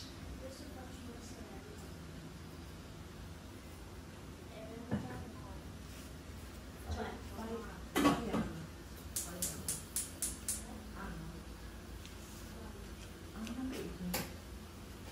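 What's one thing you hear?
Utensils clink and scrape against pots.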